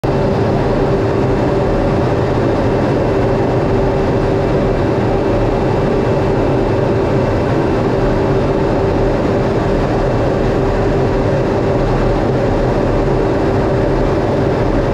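Wind rushes steadily over an aircraft canopy.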